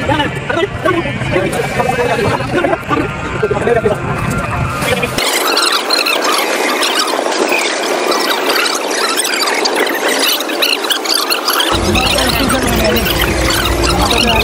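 Young men chat and laugh together outdoors.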